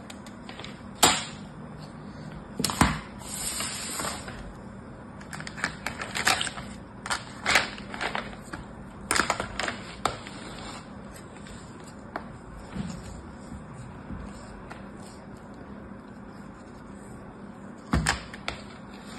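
Plastic moulds and toys clatter and tap together.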